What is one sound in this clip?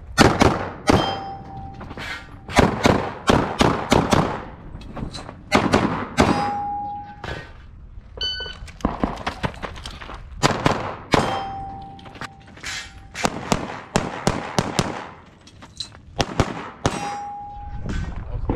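Steel targets ring when hit.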